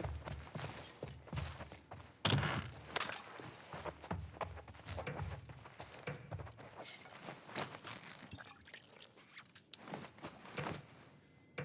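Footsteps scuff on a hard floor.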